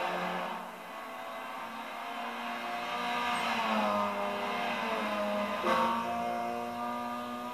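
A racing car engine roars and shifts pitch as the car speeds around the track.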